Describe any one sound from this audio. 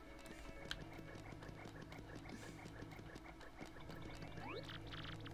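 Light footsteps patter quickly and evenly.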